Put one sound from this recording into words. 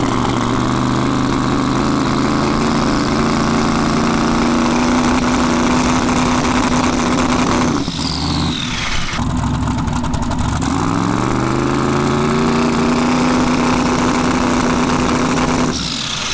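A loud, lumpy race car engine idles, dips briefly, then settles back to a steady idle.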